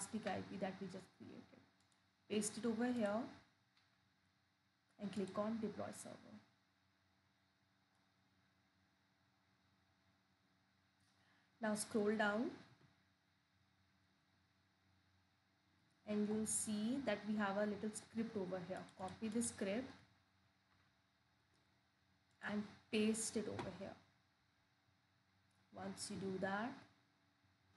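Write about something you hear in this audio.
A young woman talks calmly into a close microphone, in short bursts with pauses.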